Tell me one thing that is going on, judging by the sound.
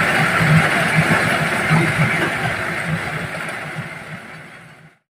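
A threshing machine engine roars and rattles loudly.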